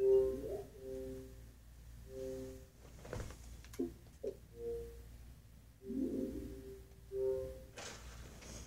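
Short electronic chimes play from a television speaker.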